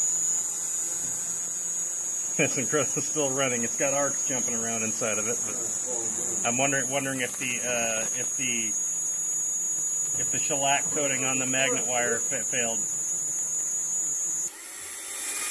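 A small DC motor whines as it spins.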